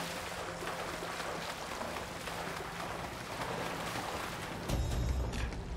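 Water splashes and gushes loudly.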